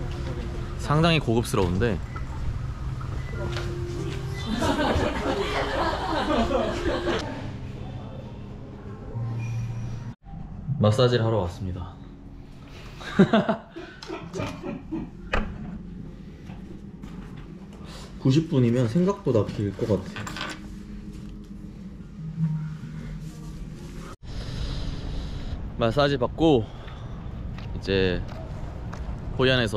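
A young man talks casually and close up.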